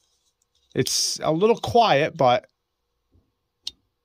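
A folding knife blade snaps open with a click.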